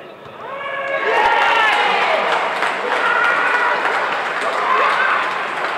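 Young men shout and cheer nearby outdoors.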